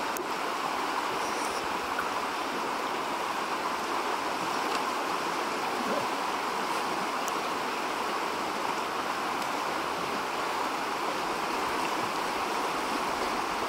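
A shallow river rushes steadily over rocks.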